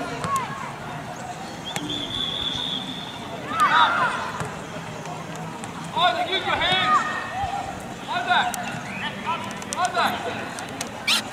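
Young players shout and call out to each other across an open outdoor pitch.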